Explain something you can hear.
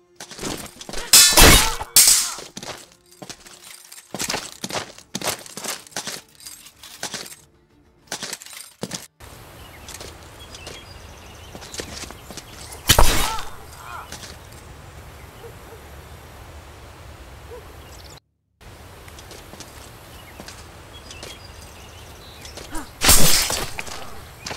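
Steel swords clash and clang sharply.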